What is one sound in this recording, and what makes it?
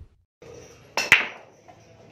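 A cue strikes a pool ball with a sharp crack.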